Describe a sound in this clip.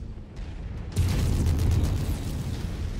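An explosion bursts loudly with crackling debris.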